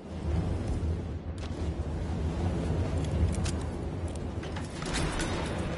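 A lock clicks as it is picked.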